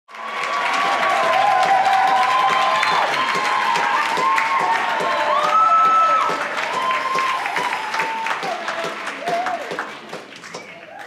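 An audience cheers and whistles loudly in a large hall.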